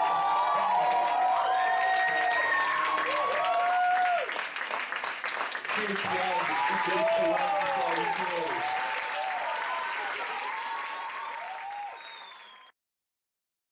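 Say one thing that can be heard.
A large audience applauds loudly, then the applause fades.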